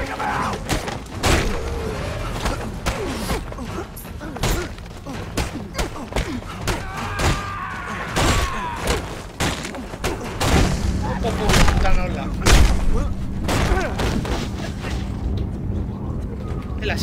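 Punches land with heavy thuds in a fistfight.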